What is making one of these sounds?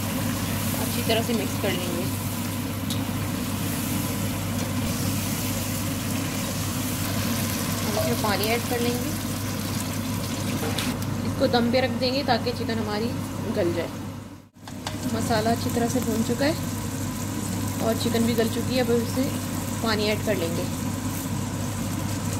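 A spatula scrapes against a pan.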